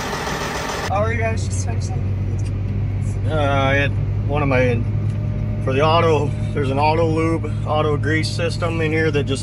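A young man speaks calmly close to the microphone.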